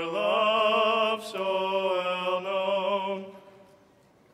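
A man chants loudly in a large echoing hall.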